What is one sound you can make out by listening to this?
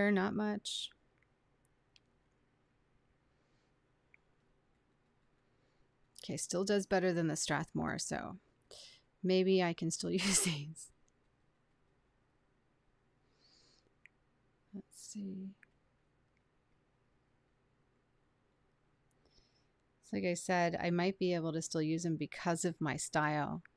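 A woman speaks calmly and warmly close to a microphone.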